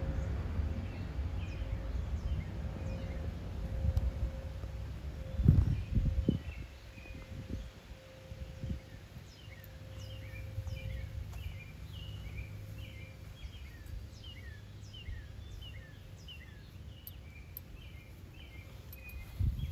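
A dog chews and gnaws on something close by.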